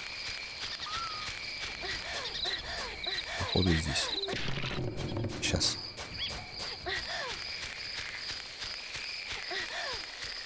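Quick footsteps patter over grass and dirt.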